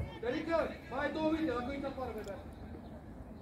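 A boy calls out loudly nearby, outdoors.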